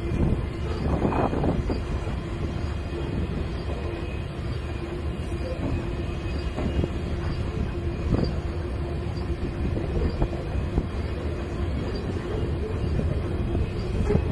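A long freight train rumbles steadily past on the rails.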